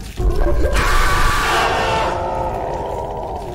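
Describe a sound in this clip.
A man shouts loudly into a close microphone.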